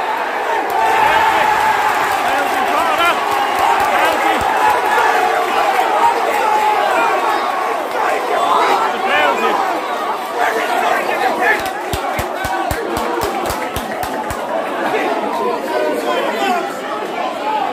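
A large crowd of fans sings and chants loudly outdoors.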